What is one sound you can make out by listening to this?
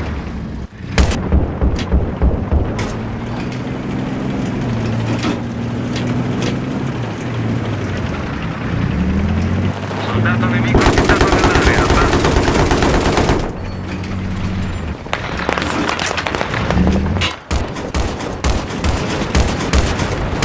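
A heavy vehicle engine rumbles and drones, rising and falling in pitch.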